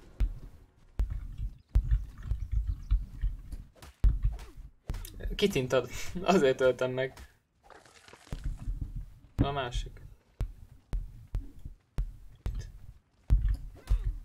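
A hatchet chops into flesh with dull thuds.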